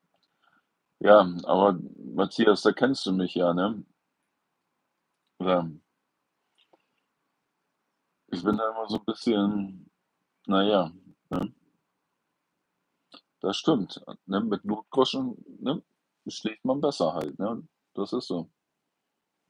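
An older man speaks calmly and close up, in short bursts with pauses.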